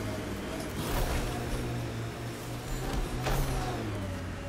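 Heavy wheels thud and bang over rough ground.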